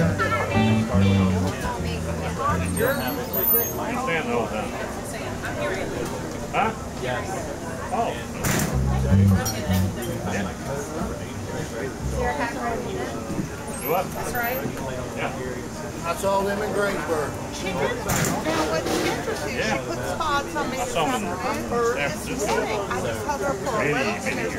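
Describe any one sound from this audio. A live band plays amplified rock music.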